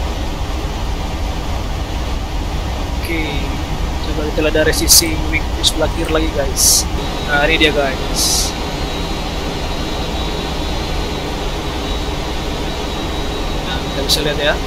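Jet engines roar in a steady, low drone.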